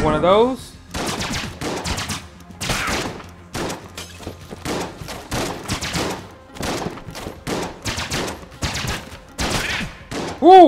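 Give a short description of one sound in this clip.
Video game gunshots fire in rapid, repeated bursts.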